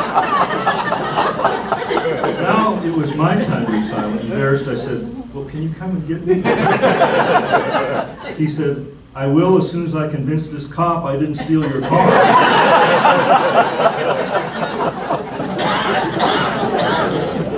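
A man speaks calmly and clearly, heard up close.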